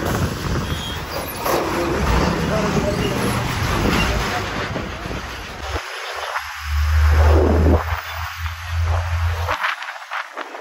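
A bus engine drones steadily up close.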